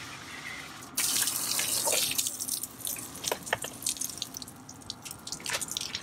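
Water splashes onto the ground.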